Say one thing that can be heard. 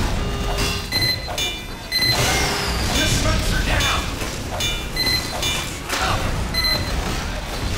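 A metal wrench clangs repeatedly against a machine.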